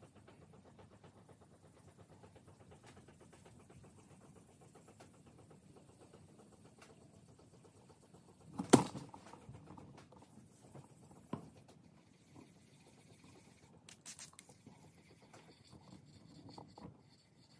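A sponge rubs softly over a smooth surface.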